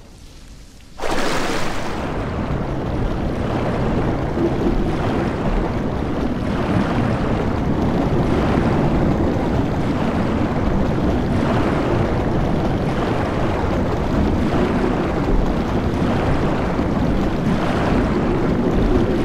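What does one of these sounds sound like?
Water splashes and churns with steady, rhythmic surges.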